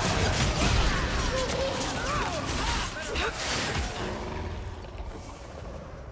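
Magic spells whoosh and swirl in a fight.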